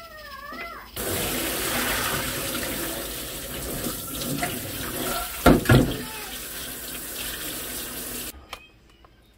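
Tap water runs and splashes into a metal sink.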